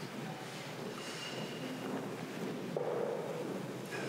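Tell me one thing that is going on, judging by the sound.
A mug clinks down on a wooden table.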